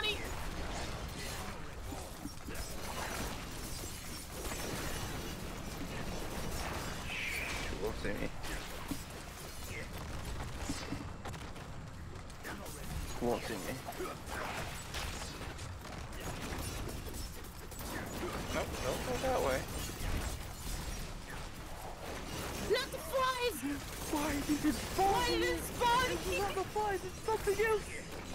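Magic blasts and blows crash and boom in a fast fight.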